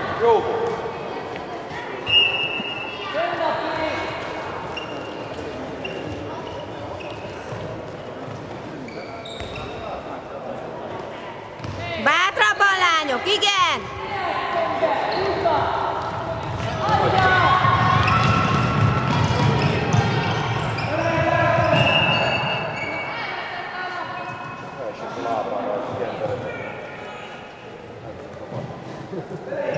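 Girls shout and call out across the court.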